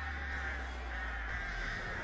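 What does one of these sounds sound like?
Crows caw nearby.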